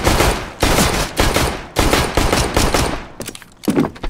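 A pistol fires rapid, loud shots in quick bursts.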